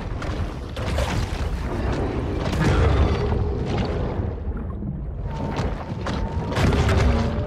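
Water rumbles and churns underwater.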